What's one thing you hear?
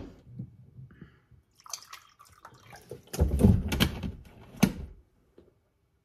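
Water pours from a plastic bottle into a mug.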